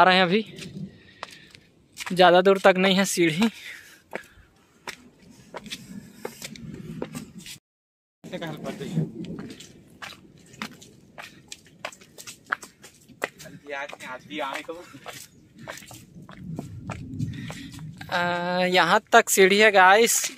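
Footsteps climb concrete steps.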